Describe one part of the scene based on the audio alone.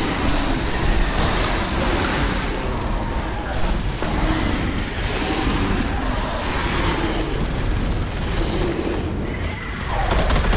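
A flamethrower roars in long, rushing bursts of fire.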